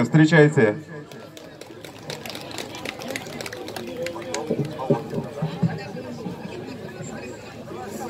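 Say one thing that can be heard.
An accordion plays through loudspeakers.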